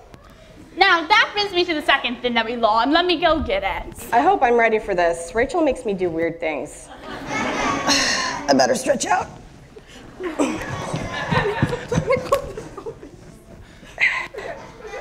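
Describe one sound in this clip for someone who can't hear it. A woman speaks with animation into a microphone in a large room.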